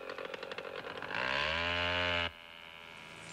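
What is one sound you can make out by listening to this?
A chainsaw revs and cuts through a tree trunk.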